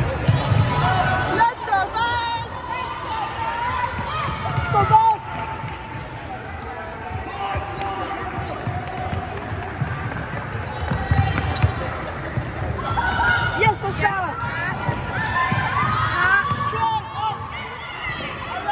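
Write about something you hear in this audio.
A ball thuds against the floor and hands.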